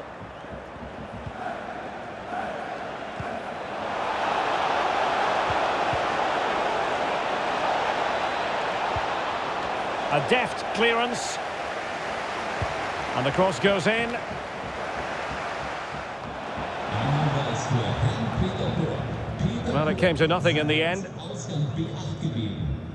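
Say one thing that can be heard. A stadium crowd roars and cheers steadily, swelling louder after a few seconds.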